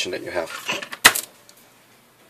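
A plastic strip taps down onto a table.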